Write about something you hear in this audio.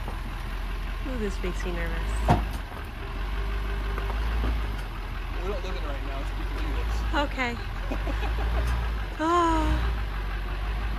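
A young child talks from inside a vehicle, muffled.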